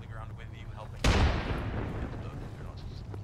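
A loud blast booms and rumbles away.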